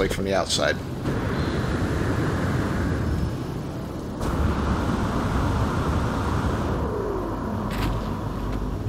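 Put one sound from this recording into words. A jetpack hisses with a steady rushing roar.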